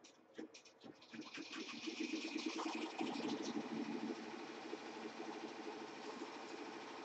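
An embroidery machine stitches with a rapid, steady rattling hum.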